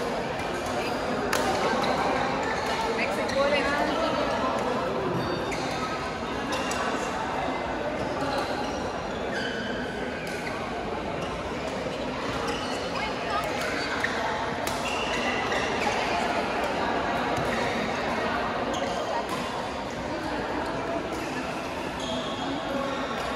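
Many people talk and call out across the hall in a steady babble.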